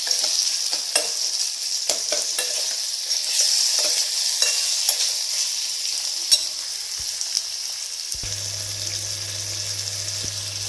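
A metal spoon clinks and scrapes against a steel pan.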